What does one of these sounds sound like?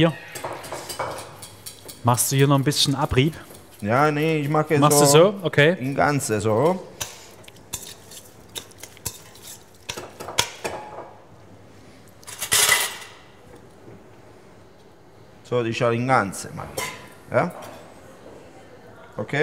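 Metal utensils scrape and clink against pans.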